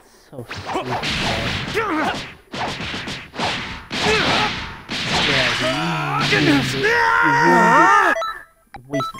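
Energy blasts whoosh and burst loudly.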